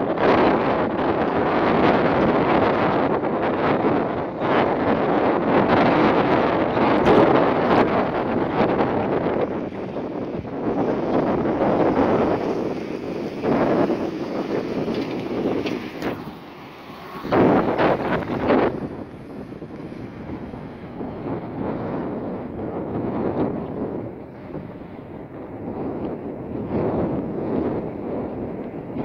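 Wind blows hard, buffeting outdoors.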